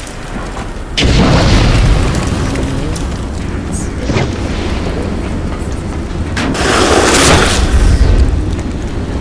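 A fire blast whooshes and roars.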